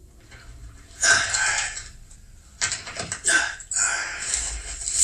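Rocks clatter and scrape as men dig by hand.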